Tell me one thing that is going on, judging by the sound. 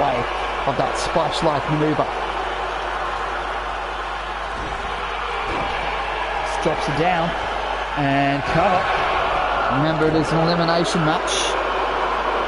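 Bodies slam hard onto a wrestling mat with thuds.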